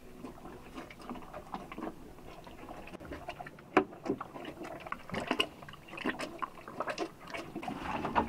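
A cow munches and slurps noisily from a bucket.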